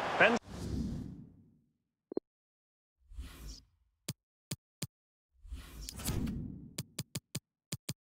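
Soft electronic whooshes sweep in as menus change.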